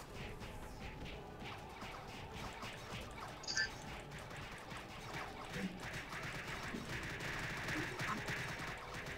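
Rapid game spell effects crackle and hit repeatedly.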